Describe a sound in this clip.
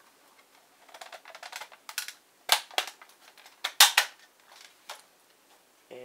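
Plastic parts click and clatter close by.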